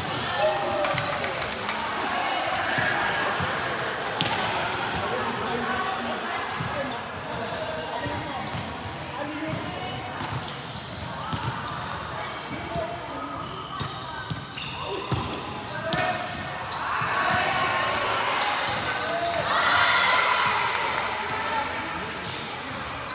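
Young men call out and chatter across a large echoing hall.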